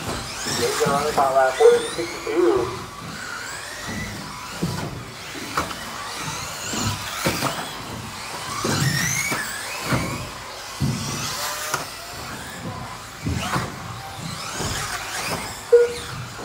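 Model cars thump over bumps and knock against track edges.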